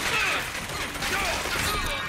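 A gun fires with sharp bangs.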